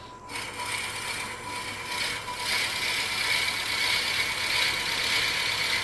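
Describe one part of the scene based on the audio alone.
A gouge scrapes and hisses against spinning wood.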